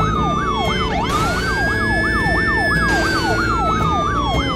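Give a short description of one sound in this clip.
Water splashes as a truck drives through it.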